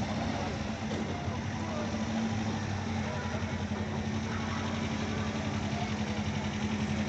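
A car engine idles with a steady rumble close by.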